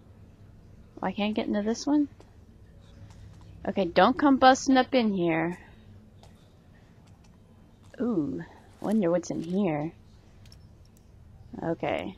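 A young woman talks calmly and closely into a microphone, in short bursts.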